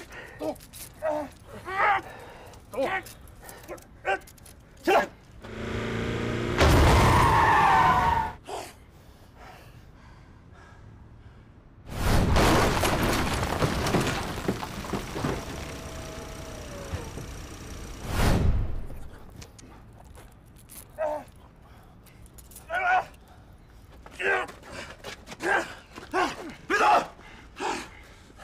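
A man speaks tensely and urgently, close by.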